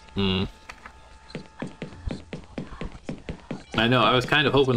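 Footsteps tap across a wooden floor.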